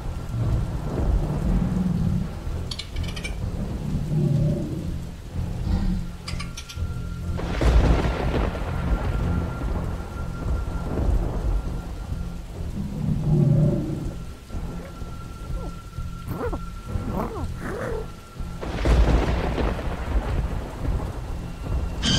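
Heavy rain pours down steadily outdoors.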